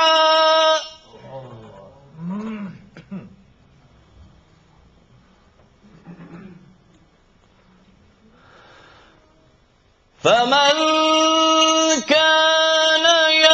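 A man sings a long, drawn-out melodic chant through a microphone in an echoing room.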